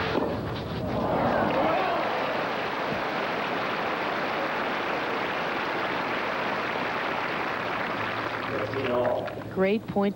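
A large crowd applauds and cheers outdoors.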